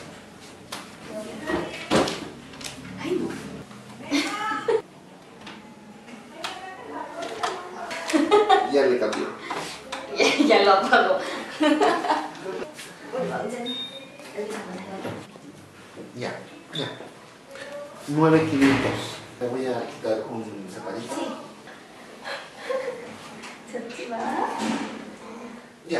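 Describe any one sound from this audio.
A young woman speaks softly and playfully nearby.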